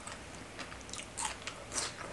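A young woman sucks sauce from her fingers with a smacking sound.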